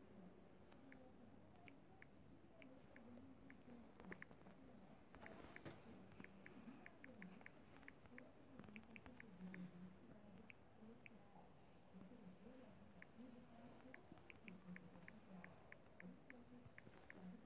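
Phone keyboard keys click quickly, one tap after another.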